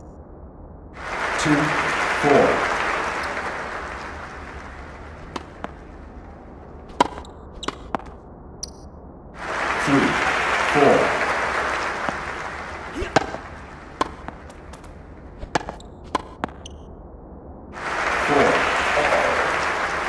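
A crowd cheers and applauds in bursts.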